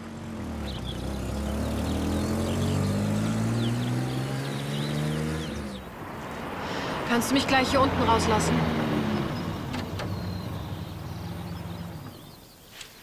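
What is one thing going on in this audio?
A car engine hums and revs as a car drives along a road.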